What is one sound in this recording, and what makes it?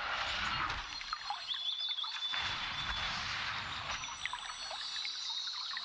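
Chimes and whooshes of a card game play.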